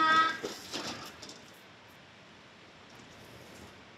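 Wooden sliding doors rattle as they slide open.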